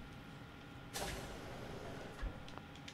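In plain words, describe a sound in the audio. A heavy door slides open with a loud rushing hiss.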